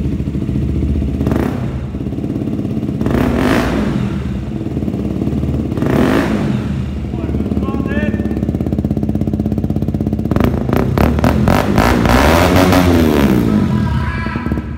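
A motorcycle engine revs up sharply several times and falls back.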